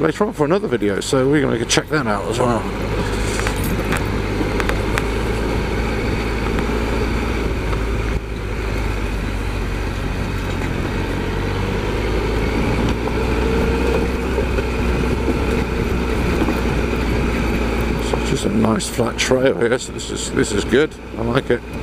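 Tyres crunch over dirt and stones.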